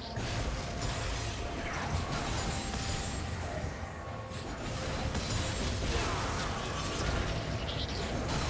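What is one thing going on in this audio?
Spell effects whoosh and crackle during a fight.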